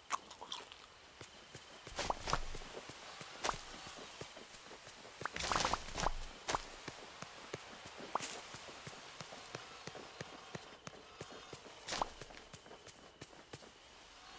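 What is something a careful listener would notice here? Footsteps patter quickly on grass and stone.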